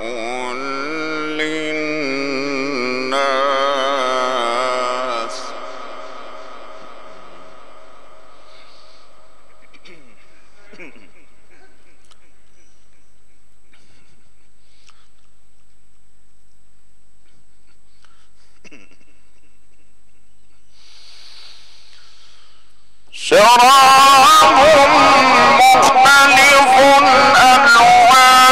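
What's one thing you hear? A man chants in a long, melodic voice through a microphone, in a reverberant hall.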